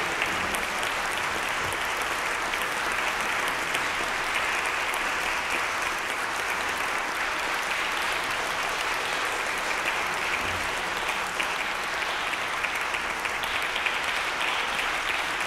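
An audience applauds steadily in a large echoing hall.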